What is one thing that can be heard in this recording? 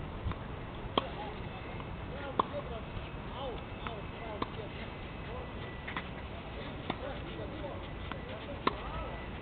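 A tennis racket strikes a tennis ball.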